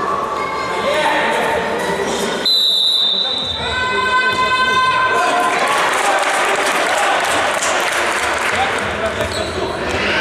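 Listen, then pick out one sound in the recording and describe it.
Male players shout and call out across an echoing hall.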